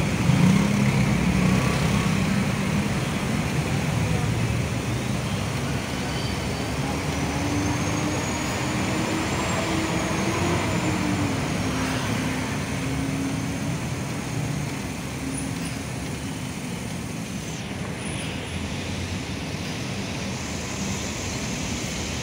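Car engines hum nearby as cars pass slowly.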